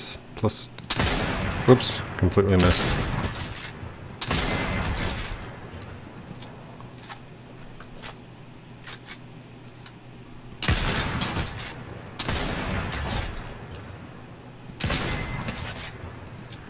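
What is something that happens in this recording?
Sniper rifle shots ring out with a long echo.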